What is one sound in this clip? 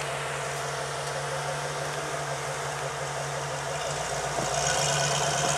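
An engine idles steadily.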